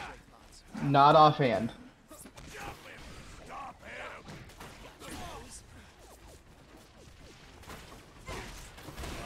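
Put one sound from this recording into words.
Punches and kicks land with thuds in a fight.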